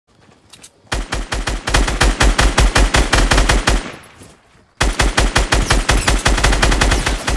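A rifle fires in rapid bursts of loud shots.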